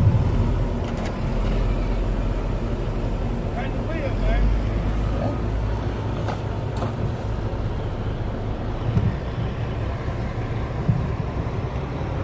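A wheel loader's diesel engine runs nearby outdoors.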